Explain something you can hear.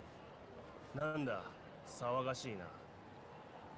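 A man asks a question calmly, close by.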